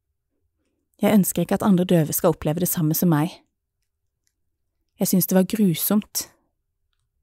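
A woman talks expressively close by.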